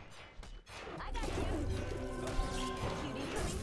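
Weapons clash and spells crackle in a video game fight.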